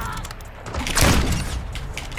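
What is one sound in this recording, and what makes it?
A sniper rifle fires a single loud shot.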